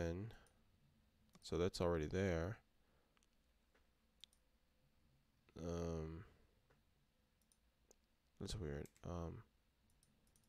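A young man speaks calmly into a microphone in short phrases.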